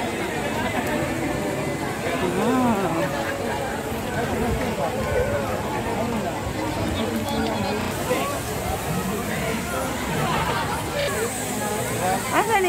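A busy crowd of men, women and children chatters all around outdoors.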